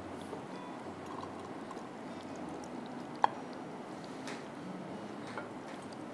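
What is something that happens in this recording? A pan knocks against a glass dish.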